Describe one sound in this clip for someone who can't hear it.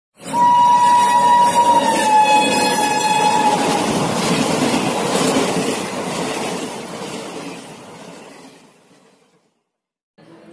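A fast train roars past and fades into the distance.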